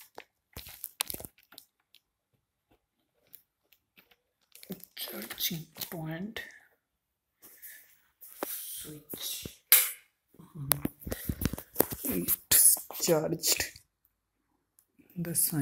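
A charger plug scrapes and clicks into a laptop's socket.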